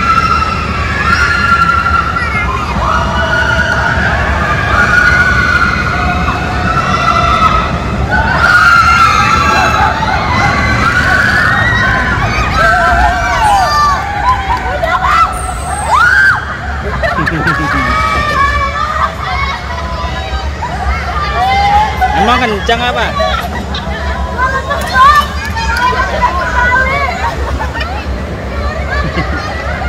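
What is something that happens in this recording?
A roller coaster rumbles and rattles along its track.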